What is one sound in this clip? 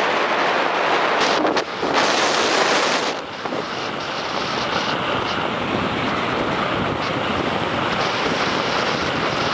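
Strong wind roars across the microphone outdoors.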